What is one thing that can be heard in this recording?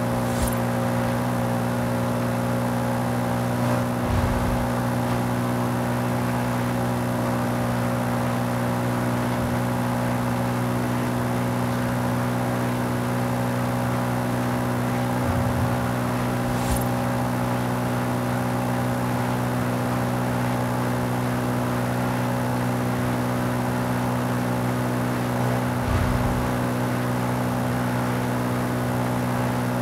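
A car engine drones steadily at high speed.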